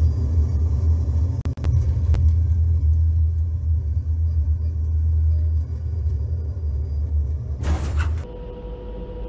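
A jet engine rumbles loudly.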